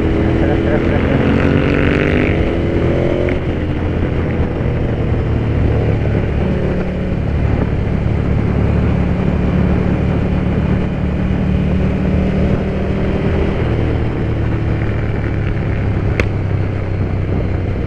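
A motorcycle engine hums steadily close by as the bike rides along.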